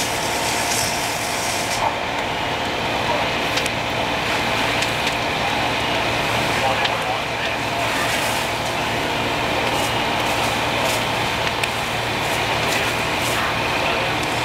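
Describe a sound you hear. A fire hose sprays a strong, hissing jet of water.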